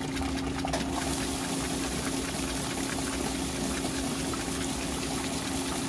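A washing machine motor hums steadily.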